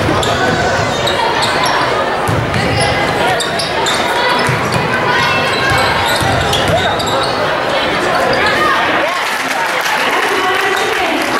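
Sneakers squeak sharply on a wooden gym floor.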